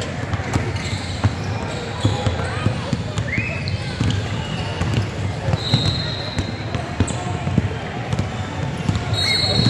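Players' feet patter and thump across the court.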